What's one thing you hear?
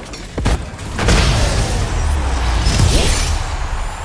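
Triumphant victory music from a video game swells up loudly.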